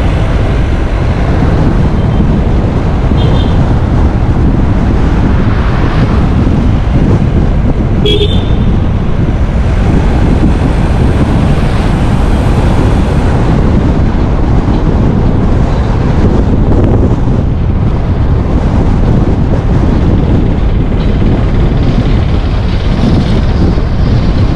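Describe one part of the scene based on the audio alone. A car engine rumbles steadily as tyres roll over the road.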